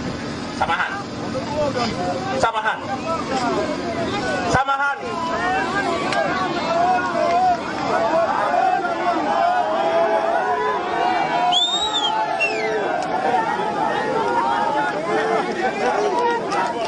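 A man speaks with animation into a microphone over loudspeakers outdoors.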